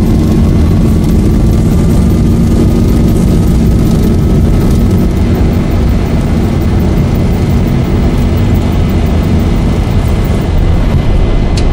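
Wheels rumble over the runway.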